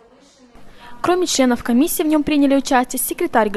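A woman speaks clearly close by.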